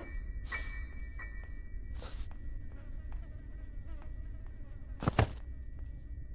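Footsteps thud on a creaky wooden floor.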